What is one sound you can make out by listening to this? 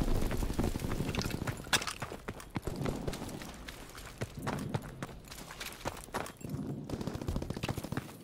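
Footsteps crunch quickly over cobblestones.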